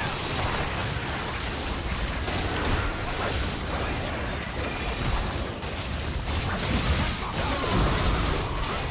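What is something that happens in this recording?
Magic spells whoosh and crackle during a fast fight.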